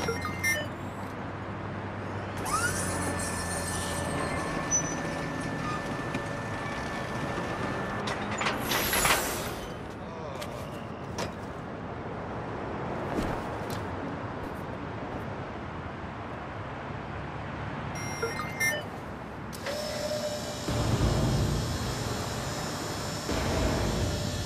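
A motorised lift platform hums steadily as it rises.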